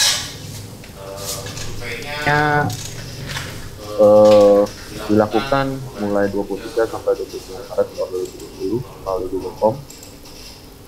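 A young man speaks calmly through an online call.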